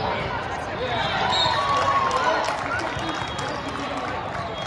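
Young players clap and cheer as a huddle breaks.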